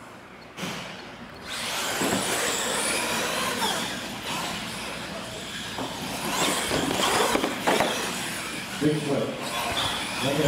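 Small electric motors whine as radio-controlled cars race across a hard floor.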